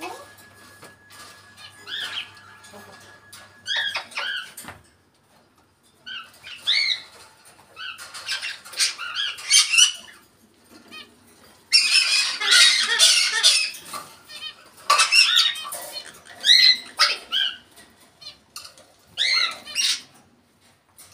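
A parrot squawks and whistles close by in bursts.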